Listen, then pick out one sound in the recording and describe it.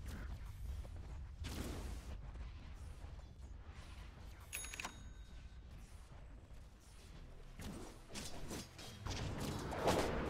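Fantasy spell effects whoosh and crackle during a game fight.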